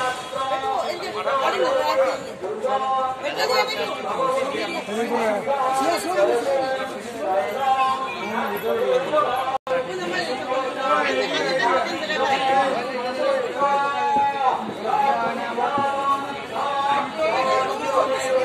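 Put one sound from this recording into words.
A crowd of young men and other people chatter nearby.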